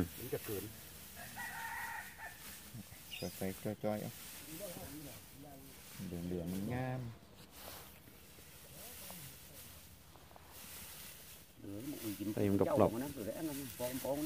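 Dry straw rustles and crackles.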